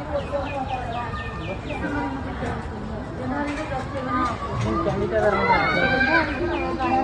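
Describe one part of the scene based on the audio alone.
A crowd of men and women talk and shout excitedly close by.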